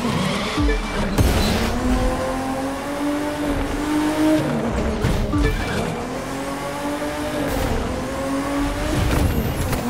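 Tyres screech on wet tarmac.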